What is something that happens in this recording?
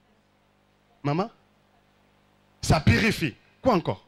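A young man speaks with animation into a microphone through loudspeakers.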